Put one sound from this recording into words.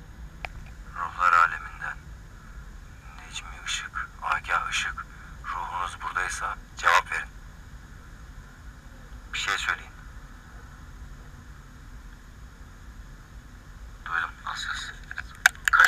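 A man speaks softly in short bursts close by.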